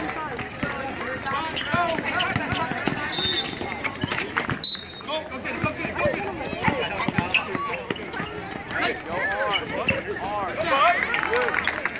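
A crowd of spectators talks and calls out outdoors.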